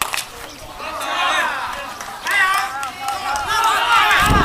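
Men call out and chatter across an open outdoor field.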